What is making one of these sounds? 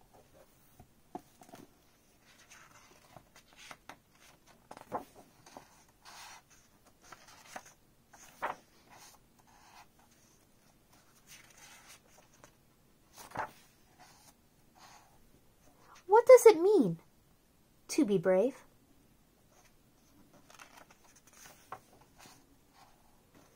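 Pages of a book turn with a soft paper rustle.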